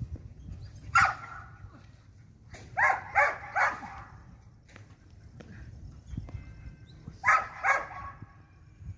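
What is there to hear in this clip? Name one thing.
A Belgian Malinois barks in short bursts outdoors.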